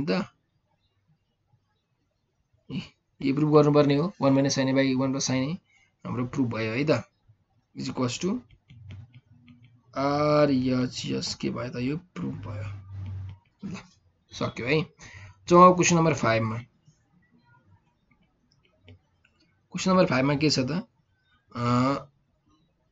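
A young man explains calmly into a close microphone, pausing often.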